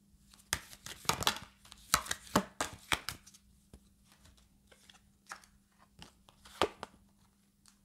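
Cards shuffle and tap together in a woman's hands.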